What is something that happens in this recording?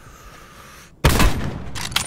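A rifle fires a single loud, booming shot.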